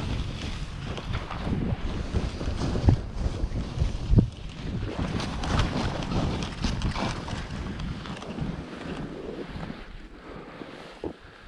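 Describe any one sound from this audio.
Skis hiss and crunch through soft snow.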